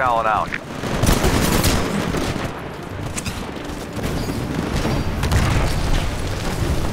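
Gunfire rattles and booms in rapid bursts.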